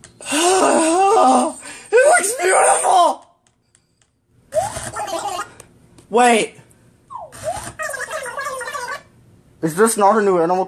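A young man sings loudly and expressively close to the microphone.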